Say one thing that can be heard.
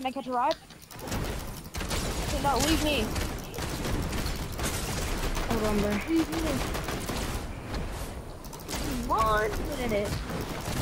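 Gunfire and explosions from a game crackle loudly.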